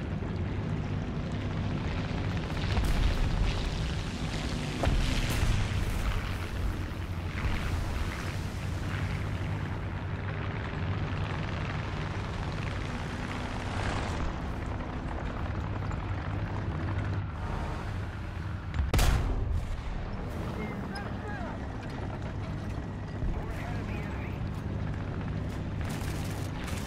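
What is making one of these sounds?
A tank engine rumbles low and steady.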